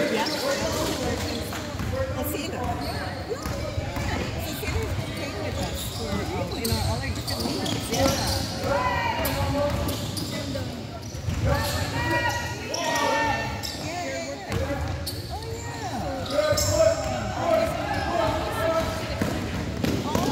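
A basketball bounces on a hardwood floor.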